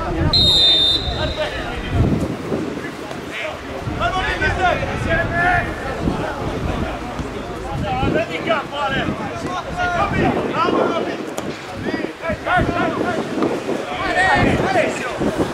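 A crowd of spectators murmurs and calls out from the stands outdoors.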